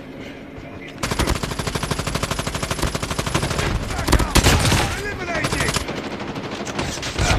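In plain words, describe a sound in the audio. Rapid gunfire rattles loudly in bursts.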